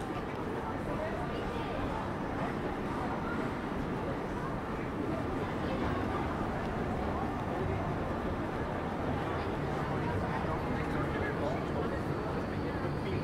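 A busy pedestrian street murmurs with distant chatter and footsteps outdoors.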